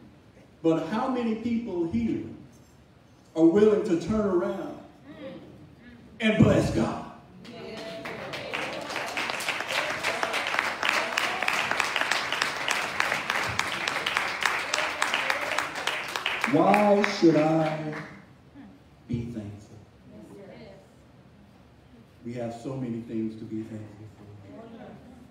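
A man preaches with animation into a microphone in an echoing hall.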